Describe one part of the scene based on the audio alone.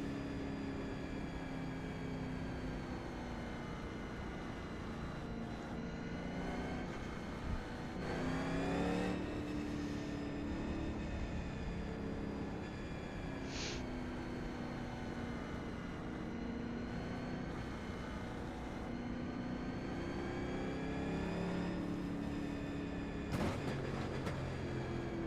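A race car engine drones loudly, its pitch rising and falling with the throttle.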